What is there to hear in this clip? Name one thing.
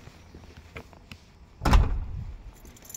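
A glass door clunks as it opens.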